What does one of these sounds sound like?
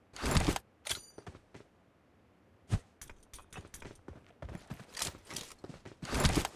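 Footsteps thud quickly across grass.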